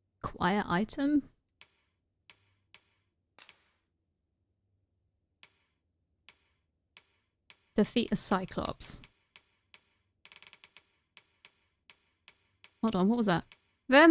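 Soft game menu ticks click as a selection moves.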